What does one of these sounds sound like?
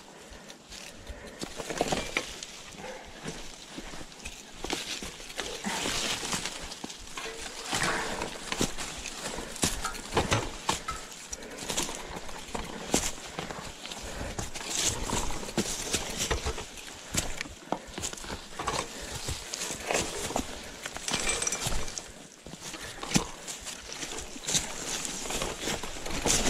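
Bicycle tyres crunch and rattle over dry leaves and rough ground.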